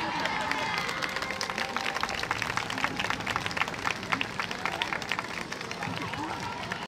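Wooden hand clappers clack in quick rhythm.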